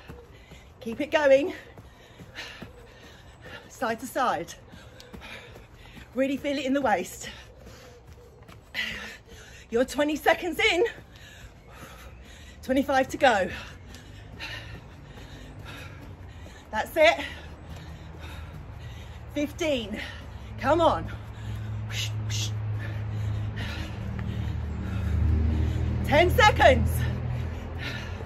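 A woman speaks with animation close to a microphone, in short bursts.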